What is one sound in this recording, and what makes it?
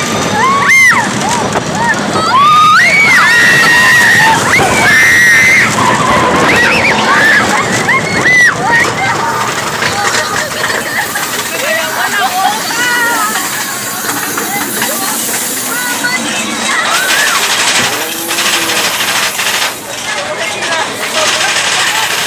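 A roller coaster train rattles and rumbles along its track.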